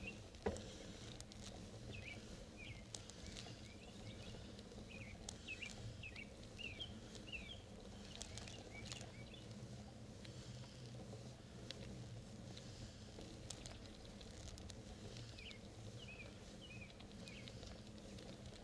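Bicycle tyres hum steadily on rough asphalt.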